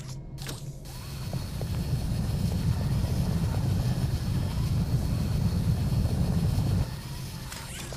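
A heavy metal door slides open with a loud, steady rumble.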